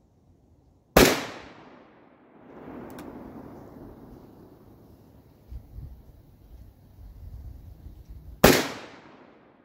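A large revolver fires loud shots that echo across open ground.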